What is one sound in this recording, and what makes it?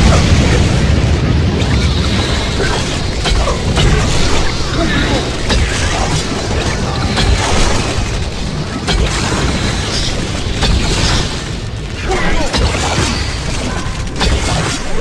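Weapons clash and strike in quick bursts.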